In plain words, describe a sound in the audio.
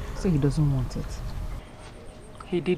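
An older woman speaks in a low, pained voice nearby.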